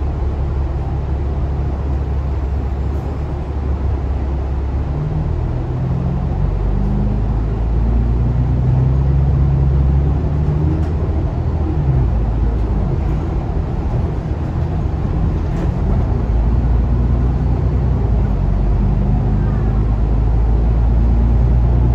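A bus rattles and creaks over the road.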